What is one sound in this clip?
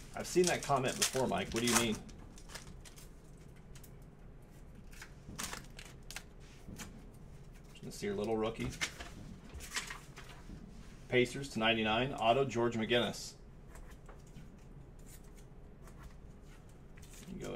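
Trading cards rustle and slide against each other in a pair of hands.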